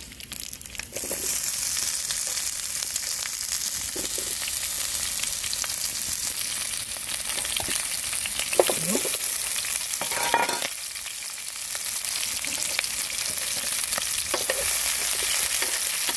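Leek pieces sizzle in oil in a frying pan.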